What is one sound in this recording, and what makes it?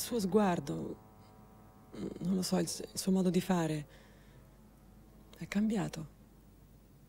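A woman speaks quietly and slowly nearby.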